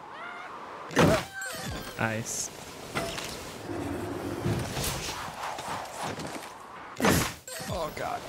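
A snowboard lands with a heavy thud.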